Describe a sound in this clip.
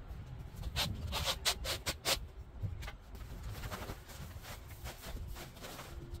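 A plastic bag rustles and crinkles loudly.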